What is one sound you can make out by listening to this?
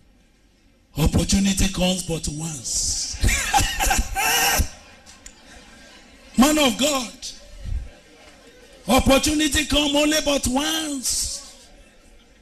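A woman preaches with animation through a microphone.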